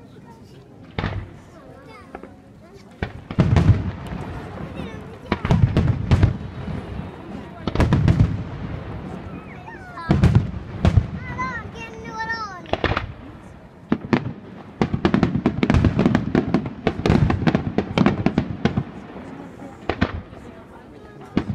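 Fireworks burst with loud booms and crackles in the distance outdoors.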